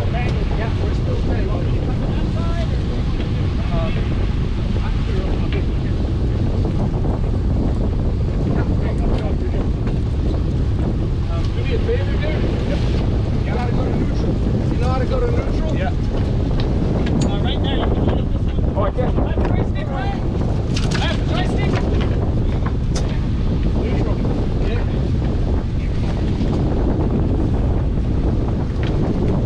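Men shout with excitement out on the water.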